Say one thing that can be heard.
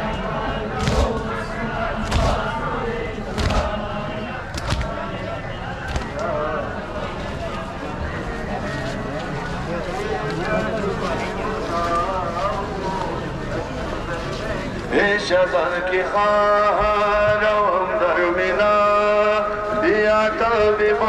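A large crowd of men murmurs and chants outdoors.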